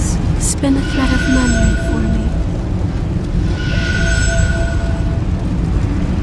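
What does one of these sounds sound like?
A soft electronic chime rings twice.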